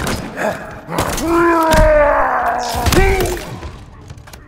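A creature screeches and growls up close.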